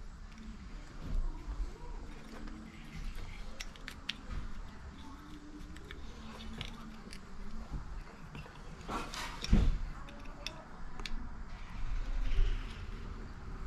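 Wires rustle and scrape against each other.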